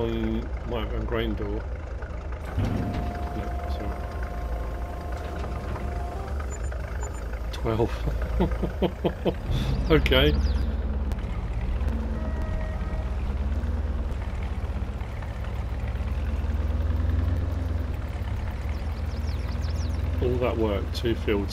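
A truck engine hums steadily as it idles and then drives off.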